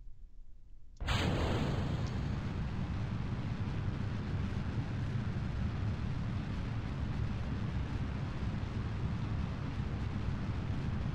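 Rocket engines roar at liftoff.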